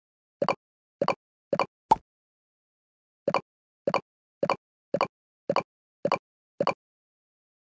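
Short game chimes pop as balls merge, one at a time.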